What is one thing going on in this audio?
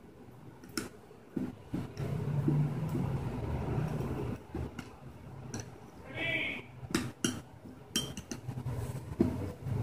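A spoon stirs and clinks in a small bowl.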